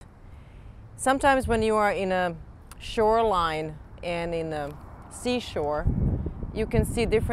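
A woman speaks calmly and clearly through a clip-on microphone.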